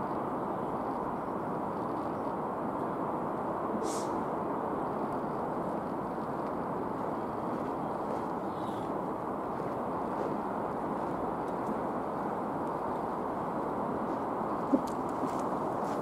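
A train rumbles steadily along the tracks as it approaches.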